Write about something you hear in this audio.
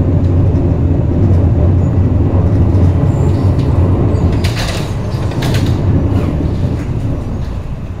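A passing train roars by close at hand.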